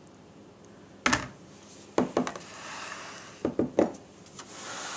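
A glass measuring jug knocks down on a hard counter.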